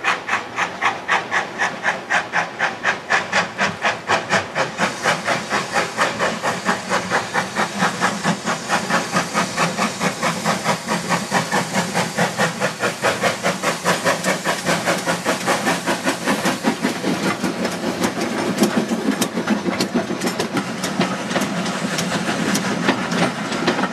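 A river rushes over rocks.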